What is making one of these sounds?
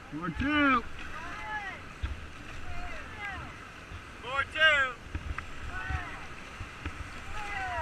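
Paddles splash into the water.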